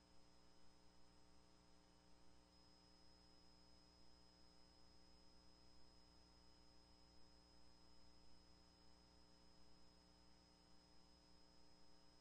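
People murmur quietly in a large room.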